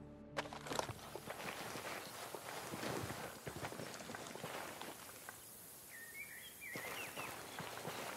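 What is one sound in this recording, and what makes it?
Footsteps crunch and scuff on rough ground and through grass.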